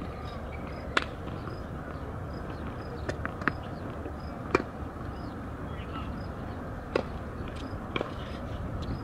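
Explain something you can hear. A tennis ball bounces on a hard court with sharp thuds.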